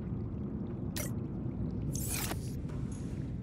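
A menu closes with a short click and a whoosh.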